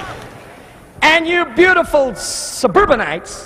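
A man speaks into a microphone, his voice echoing through the hall.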